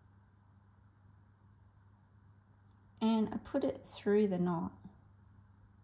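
A needle and thread pull softly through fabric.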